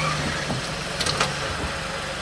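A car door clicks open.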